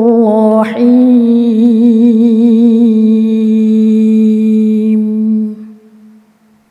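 A young woman chants a long melodic recitation into a microphone, her voice ringing in a large hall.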